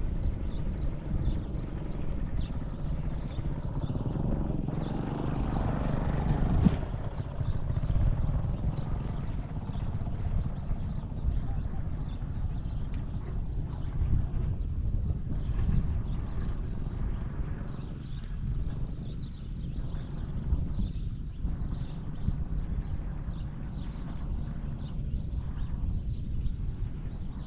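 Wind rumbles steadily outdoors.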